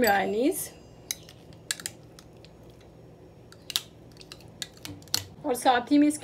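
A spoon clinks and scrapes against a glass bowl.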